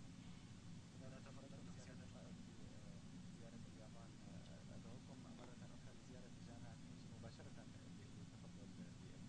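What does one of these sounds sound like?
A man speaks quietly into a microphone, faint and distant.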